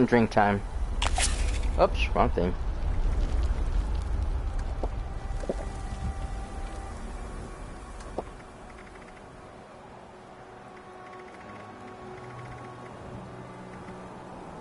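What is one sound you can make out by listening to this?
Soft electronic clicks tick as a menu scrolls.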